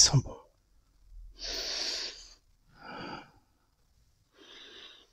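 A man draws on a cigar and blows out smoke with breathy puffs.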